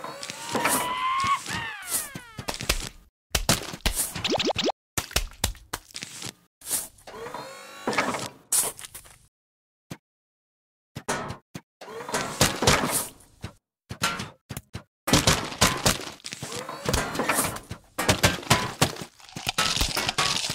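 Cartoonish game plants lob melons with soft thuds and splats.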